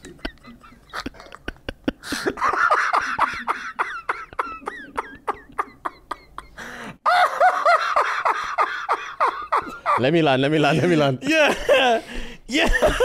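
A second man laughs close to a microphone.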